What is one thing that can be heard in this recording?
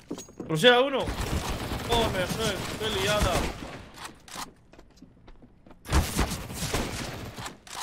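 A sniper rifle fires a loud, booming shot in a game.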